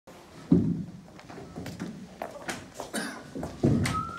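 Knocks and bumps sound as a microphone is set on a table.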